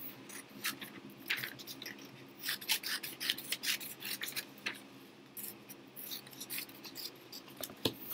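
Paper rustles and crinkles close by.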